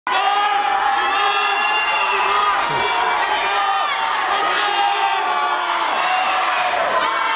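A group of singers sings together, heard from a distance.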